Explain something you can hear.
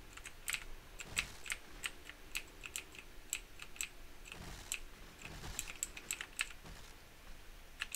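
A small motorbike engine putters along steadily.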